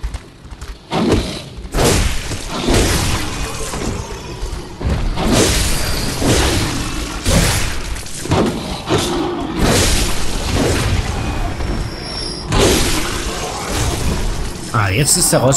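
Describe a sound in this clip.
Heavy blade blows strike and slash in a fierce fight.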